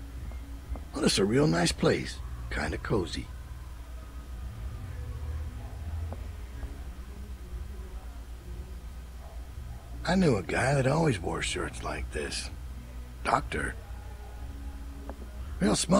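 A man speaks calmly in short bursts through a microphone.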